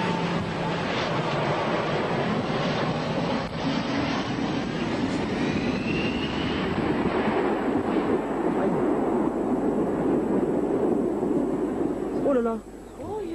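A jet airliner roars loudly as it takes off.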